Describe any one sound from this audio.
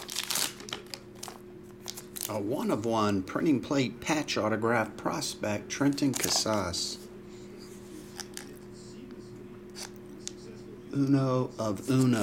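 Plastic wrapping crinkles and rustles as hands handle a card case.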